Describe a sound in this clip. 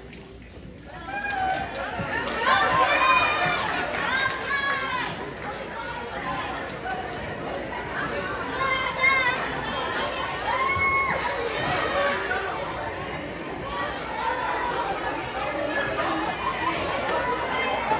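A large choir sings loudly in an echoing hall.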